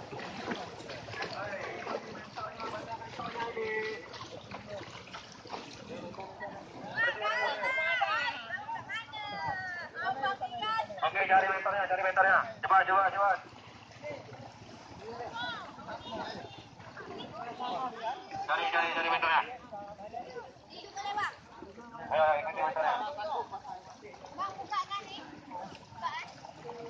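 A crowd of young people talk and shout outdoors, close by.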